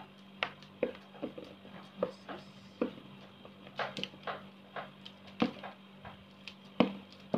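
Plastic crinkles and rustles up close in short bursts.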